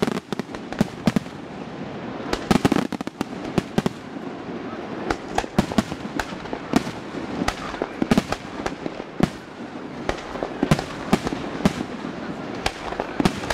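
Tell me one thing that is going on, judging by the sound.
Fireworks burst and crackle in rapid bangs outdoors.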